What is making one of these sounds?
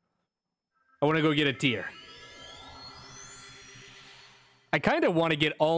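A game character dissolves away with a shimmering, rising magical whoosh.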